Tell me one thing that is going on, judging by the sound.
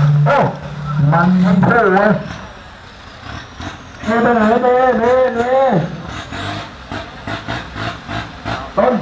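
A race car engine revs loudly in rising and falling bursts.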